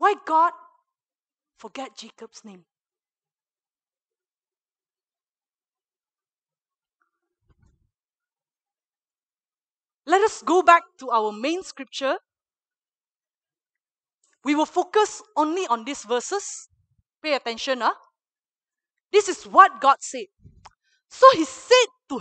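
A young woman speaks with animation through a headset microphone.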